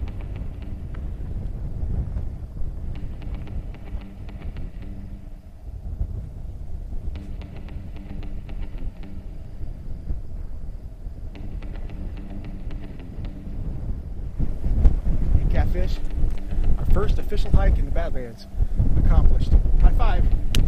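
Wind blows hard across an open outdoor space, rumbling against the microphone.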